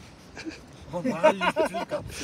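A group of men laugh and talk together.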